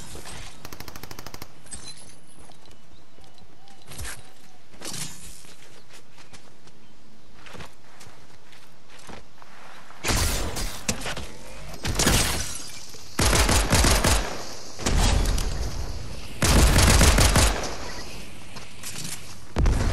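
Footsteps run quickly over snow and grass.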